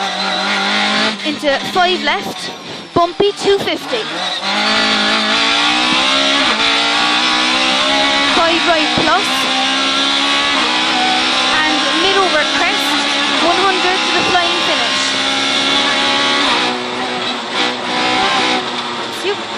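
A rally car engine roars and revs hard, rising through the gears.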